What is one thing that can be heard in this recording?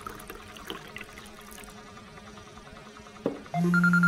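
A spoon clinks against a cup.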